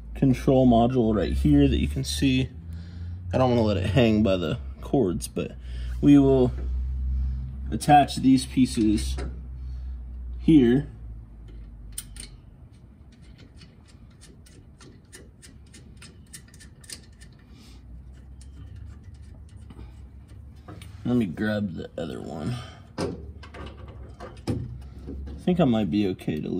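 A plastic connector clicks and rattles under handling.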